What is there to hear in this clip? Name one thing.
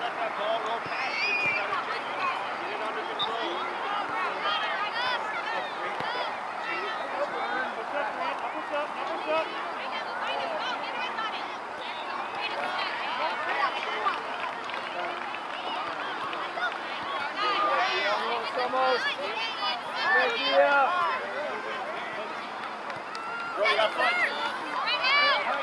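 A crowd of spectators cheers and calls out outdoors.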